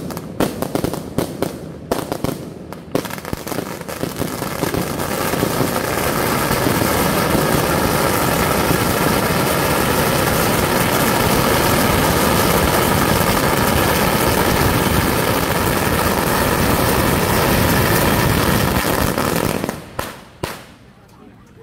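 A long string of firecrackers crackles and bangs rapidly outdoors, close by.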